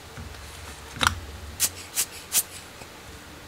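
A rubber air blower puffs short bursts of air several times.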